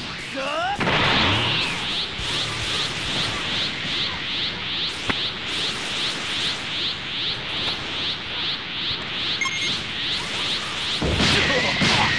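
Rapid energy shots fire in a quick, even series.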